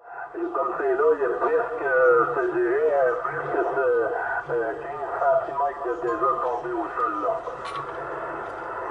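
A man's voice comes through a CB radio speaker, thin and band-limited.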